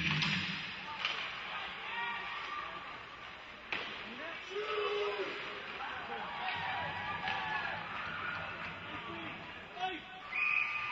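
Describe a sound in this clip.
A hockey stick clacks against a puck.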